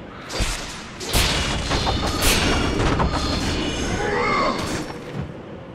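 Flaming blades whoosh and strike with heavy impacts.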